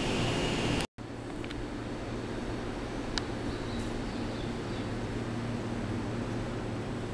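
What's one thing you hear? An electric train rolls slowly toward the listener with a low, steady hum.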